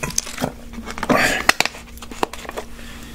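A plastic wrapper crinkles close by.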